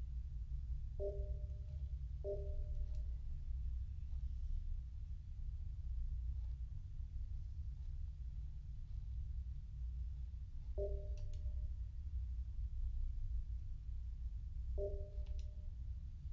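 A short electronic chime sounds as game dialogue pops up.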